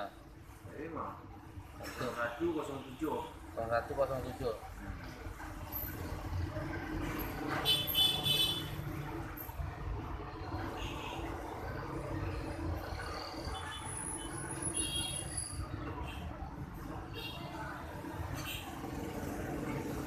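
Fingertips tap lightly on a phone's touchscreen.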